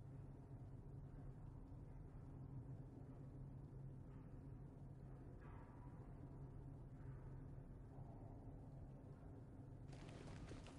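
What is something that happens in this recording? A low steady hum drones through a tunnel.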